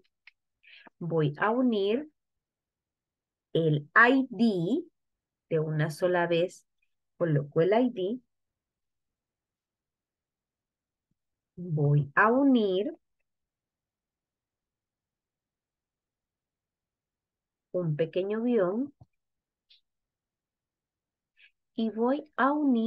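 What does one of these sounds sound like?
A young woman speaks calmly and clearly through a microphone, pausing often.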